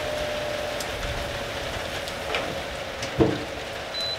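A metal grill lid thuds shut.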